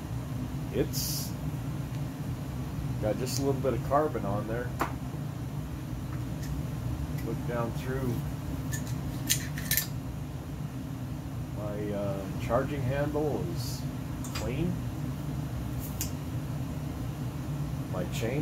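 Metal parts of a rifle click and clack as they are handled.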